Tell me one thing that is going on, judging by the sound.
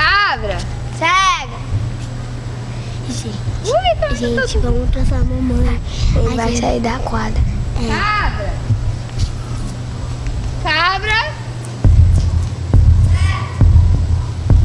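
Young children shout and squeal excitedly close by.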